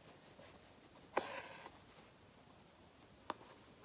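Thread rasps as it is pulled through fabric.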